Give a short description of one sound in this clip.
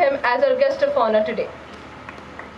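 A girl speaks clearly into a microphone over a loudspeaker.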